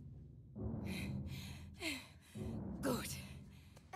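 A woman speaks tensely and close by.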